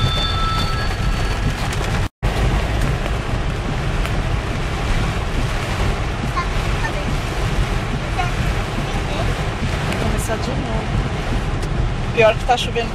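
Strong wind roars outside.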